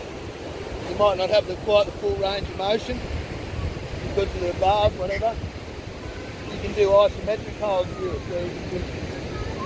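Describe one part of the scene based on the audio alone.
A middle-aged man talks outdoors, close by.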